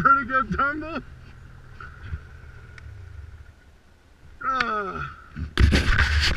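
A snowmobile engine whines and revs nearby.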